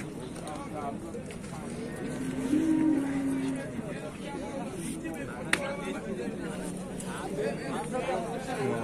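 A crowd of men talks and murmurs nearby, outdoors.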